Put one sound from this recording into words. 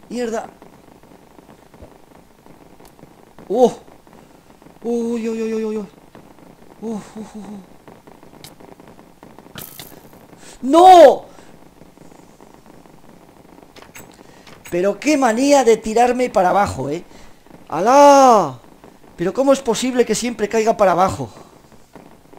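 A young man talks with animation into a microphone, in bursts.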